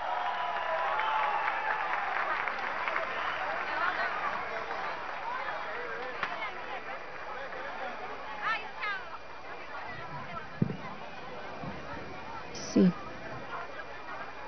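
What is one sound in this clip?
A man speaks into a microphone over loudspeakers.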